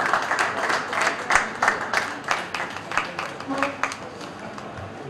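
A crowd applauds in a large room.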